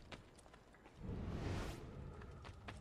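A rushing whoosh sweeps past.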